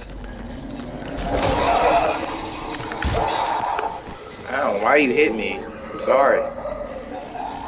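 Zombies growl and moan nearby.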